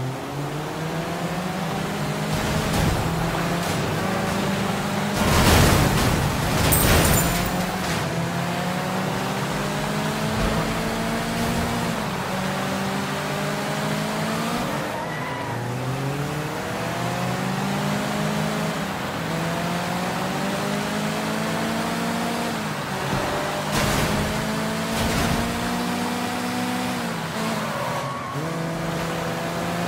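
A car engine revs hard and shifts gears as it races.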